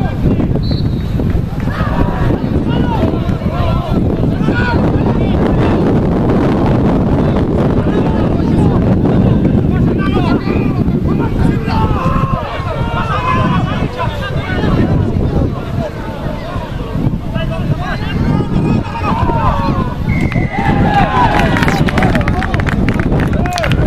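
A crowd of spectators murmurs and cheers at a distance outdoors.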